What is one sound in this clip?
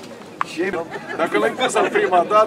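Several men talk outdoors with lively voices.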